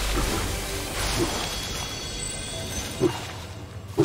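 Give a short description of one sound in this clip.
A treasure chest creaks open with a bright shimmering chime.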